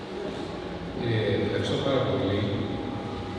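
A man speaks through a microphone and loudspeakers in an echoing hall.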